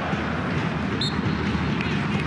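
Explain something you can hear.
A referee's whistle blows sharply once.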